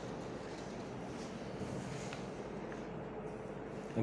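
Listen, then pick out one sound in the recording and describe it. Paper rustles as a sheet is moved aside.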